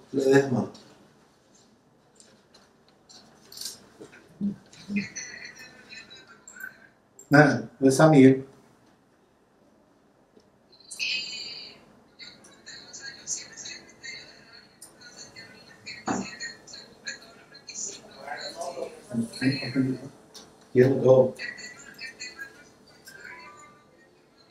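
Middle-aged men speak calmly, heard through a microphone in a quiet room.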